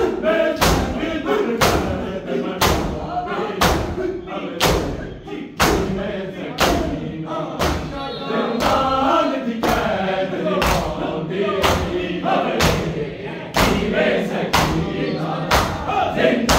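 A large crowd of men beats their chests in a slow, steady rhythm.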